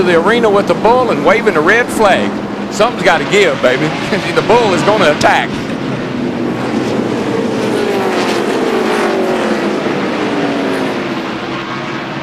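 Race car engines roar past at high speed.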